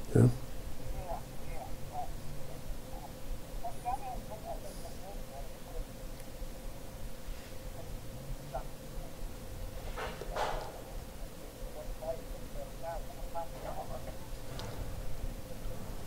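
A faint voice murmurs through a phone earpiece.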